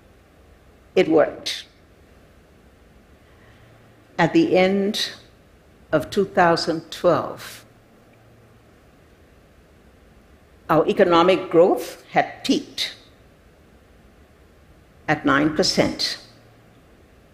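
An elderly woman speaks slowly and deliberately through a microphone, with long pauses.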